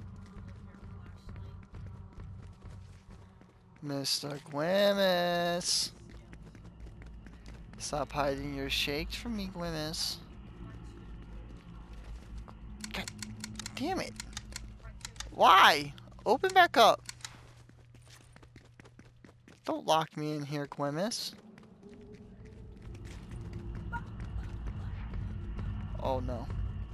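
Quick footsteps run across a hard tiled floor.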